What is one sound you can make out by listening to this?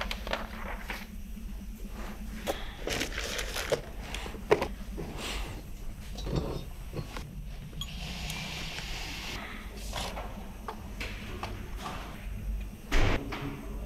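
Metal engine parts clink against a metal workbench.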